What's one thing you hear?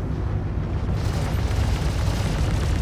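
A loud explosion bursts and roars.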